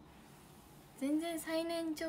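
A young woman speaks softly and brightly, close to a microphone.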